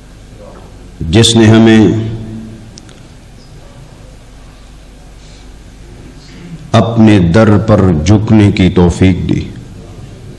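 A middle-aged man chants loudly through a microphone and loudspeaker, in bursts with pauses between.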